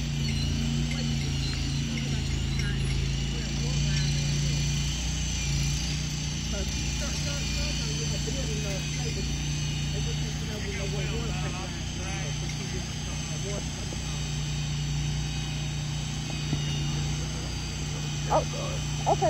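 An engine hums steadily nearby.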